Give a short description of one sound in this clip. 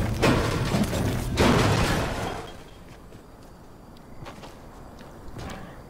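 Building pieces snap into place in quick succession.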